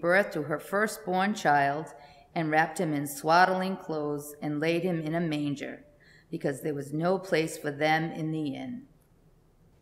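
A middle-aged woman reads aloud calmly.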